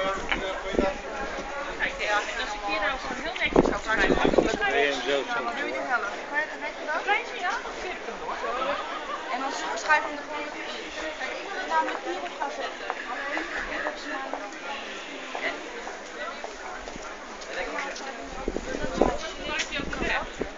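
A busy outdoor crowd chatters all around.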